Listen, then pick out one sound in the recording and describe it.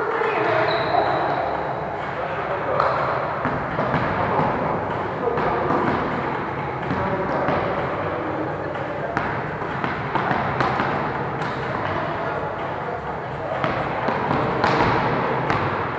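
Several men and women talk and call out in a large echoing hall.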